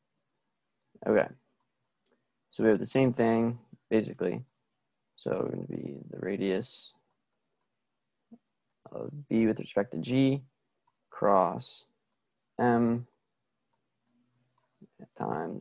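A young man speaks calmly into a close microphone, explaining with pauses.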